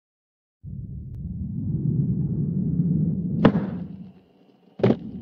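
Skateboard wheels roll with a low rumble.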